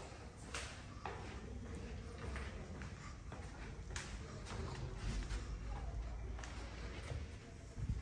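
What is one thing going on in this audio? Footsteps walk along a hallway.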